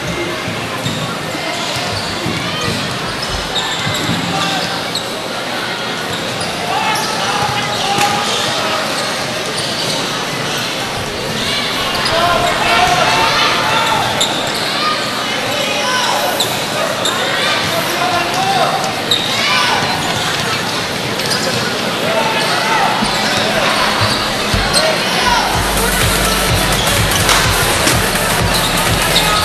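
A large crowd cheers and shouts in a big echoing gym.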